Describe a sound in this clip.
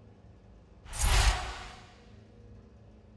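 A louder whooshing chime sounds once.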